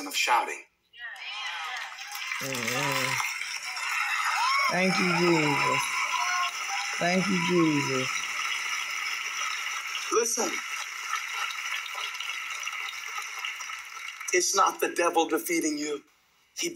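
A large crowd cheers and applauds, heard through small speakers.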